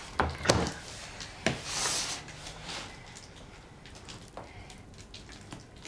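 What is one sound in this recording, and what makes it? Small hands squish and squelch a wet, soggy lump.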